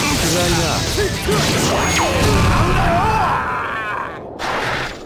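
Fighting game hits and effects crash and whoosh.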